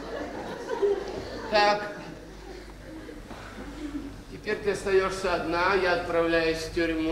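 A man speaks with animation, slightly distant in a reverberant hall.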